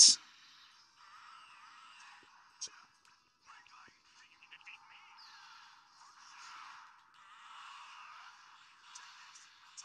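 A handheld game console plays faint, tinny game sounds.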